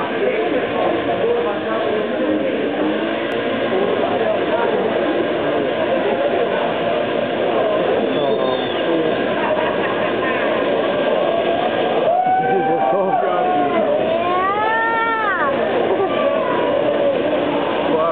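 A car engine revs hard during a burnout.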